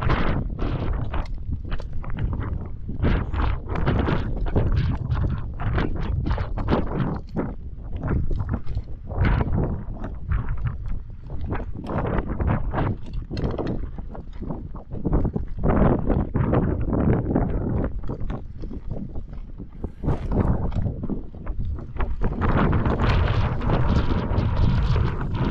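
Mountain bike tyres crunch over loose stony gravel.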